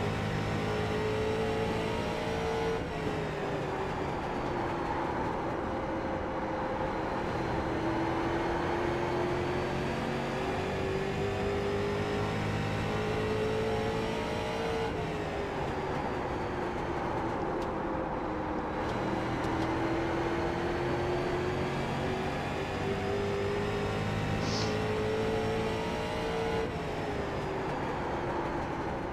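A race car engine roars steadily, dropping in pitch through each turn and rising again on the straights.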